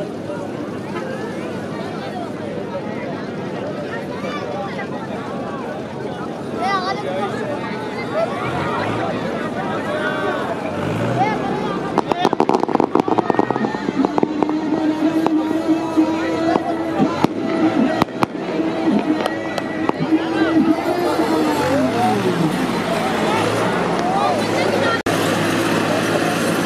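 A large outdoor crowd of men shouts and cheers.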